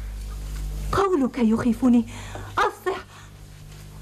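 A woman speaks with emotion, close by.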